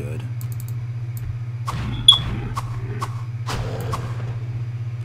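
Sharp game combat sounds clash and thud.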